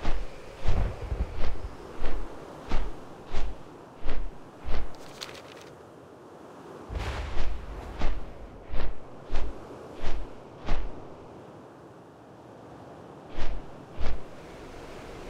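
Large wings beat with heavy, regular whooshing thumps.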